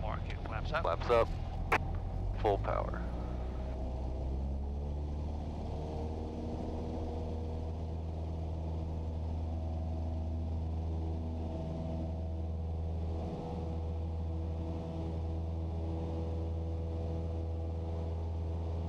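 A small plane's propeller engine drones loudly and steadily.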